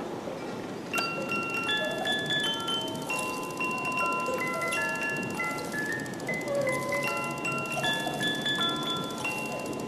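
A music box plays a tinkling melody.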